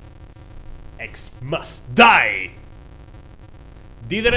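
A man speaks excitedly close to a microphone.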